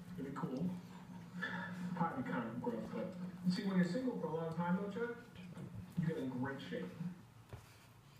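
A dog growls and grumbles playfully up close.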